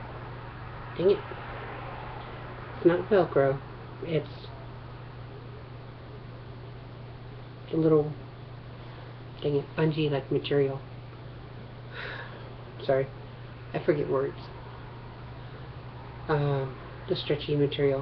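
A woman speaks calmly close to a microphone, in short phrases.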